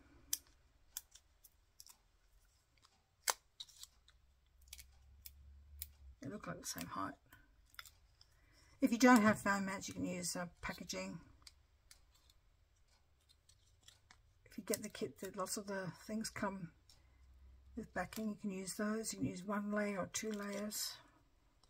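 Paper rustles and crinkles between hands.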